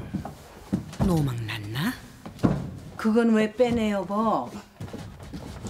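An older woman speaks with feeling, close by.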